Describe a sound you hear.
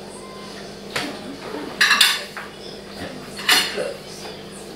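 Cutlery clinks on plates.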